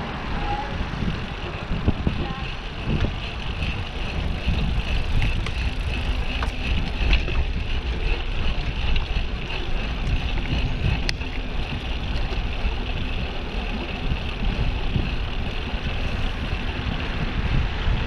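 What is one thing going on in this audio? Bicycle tyres hum steadily on smooth pavement.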